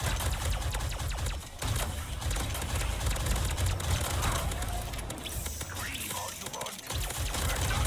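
Futuristic guns fire in rapid, crackling bursts.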